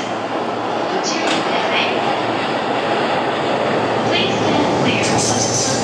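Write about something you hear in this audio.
Train wheels squeal and clatter on the rails.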